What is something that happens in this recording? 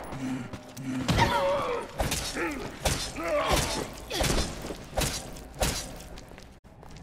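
A monster groans and snarls close by.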